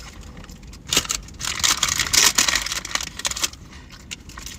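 A paper wrapper crinkles.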